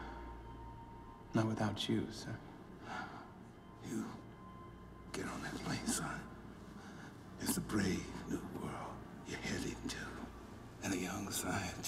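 A younger man speaks softly and earnestly, close by.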